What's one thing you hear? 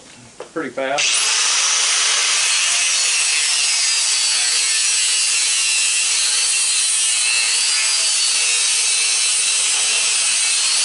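An angle grinder whines loudly as it cuts into metal.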